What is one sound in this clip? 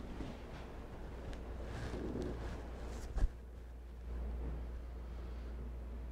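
Footsteps walk across a floor.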